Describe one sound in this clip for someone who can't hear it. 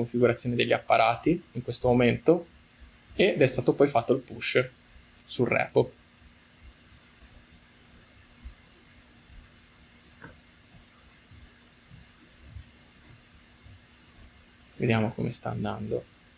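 A man speaks calmly into a close microphone, with pauses.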